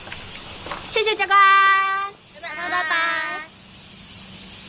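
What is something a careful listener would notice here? Young women call out a cheerful farewell together.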